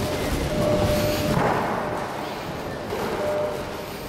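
A man's footsteps thud on a wooden floor in a large echoing hall.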